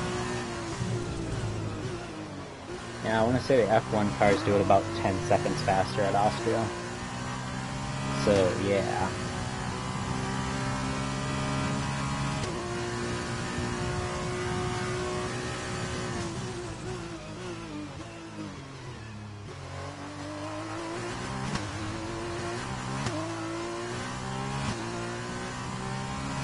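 A racing car engine whines loudly, its pitch climbing and dropping as the gears change.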